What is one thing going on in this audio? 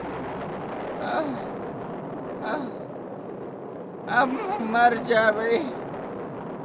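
A young woman speaks in short, halting phrases.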